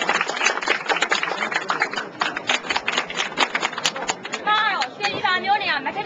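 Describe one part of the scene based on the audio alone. A crowd of men and women talks excitedly close by.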